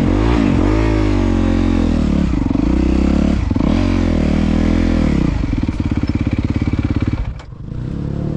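A four-stroke dirt bike revs up and down along a dirt trail.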